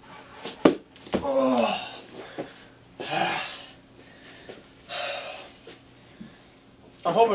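Feet thump onto a hard floor.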